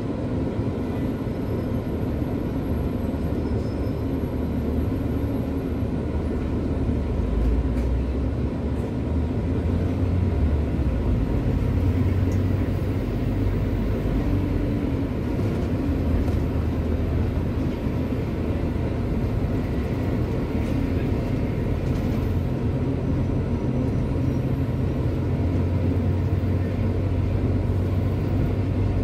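Traffic hums steadily nearby.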